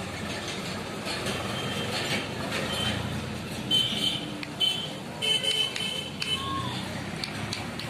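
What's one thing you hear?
A hammer taps a blade on an anvil in scattered blows.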